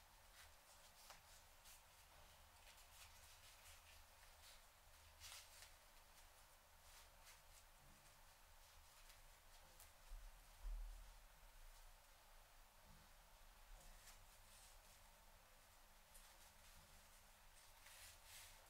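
Hands rustle through hair and a satin ribbon up close.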